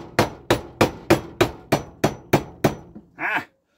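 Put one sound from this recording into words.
A hammer strikes metal in quick, regular blows.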